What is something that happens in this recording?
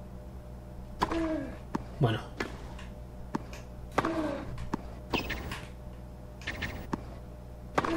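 A tennis ball is hit back and forth with rackets.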